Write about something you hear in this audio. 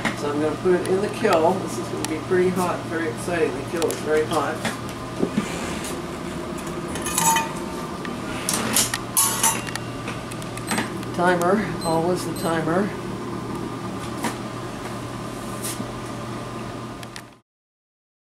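A kiln hums steadily.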